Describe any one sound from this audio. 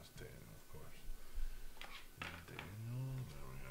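Plastic card cases click and tap as hands handle them.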